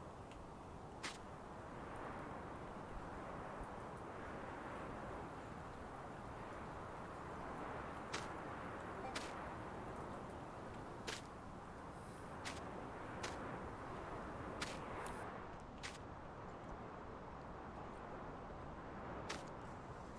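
Hay bales knock onto a trailer bed with short thuds.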